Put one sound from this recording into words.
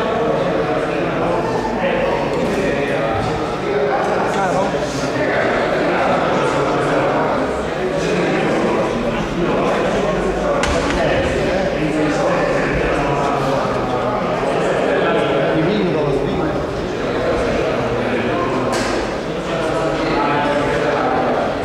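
Many men and women chatter at once in a large echoing hall.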